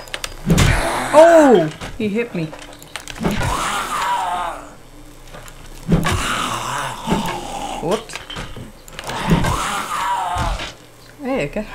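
A zombie growls and groans.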